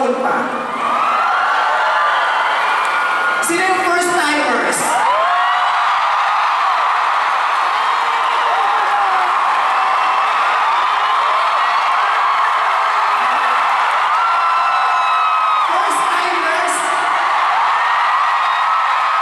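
A man sings high, drawn-out notes into a microphone over loudspeakers.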